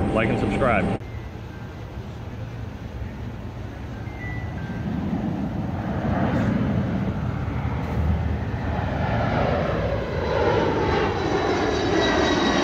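A jet plane roars overhead, growing louder.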